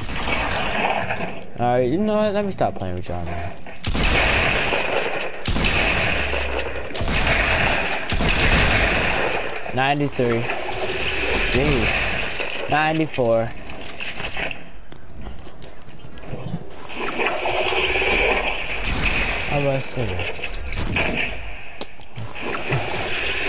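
Video game gunshots fire in quick bursts.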